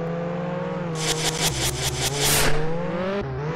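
A car crashes with a burst of rattling clatter.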